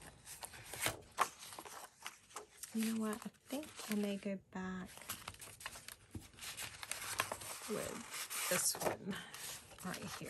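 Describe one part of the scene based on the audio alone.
Paper rustles and crinkles as sheets are handled.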